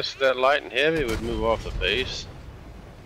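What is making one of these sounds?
A cannon shot booms with a deep blast.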